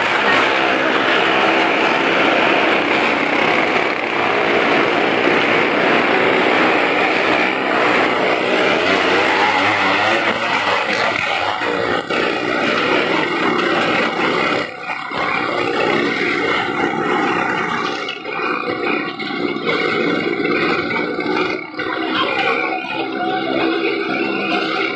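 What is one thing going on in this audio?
Motorcycle engines whine and roar.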